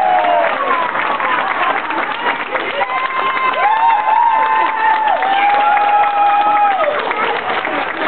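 A group of young people sing loudly together in a large echoing hall.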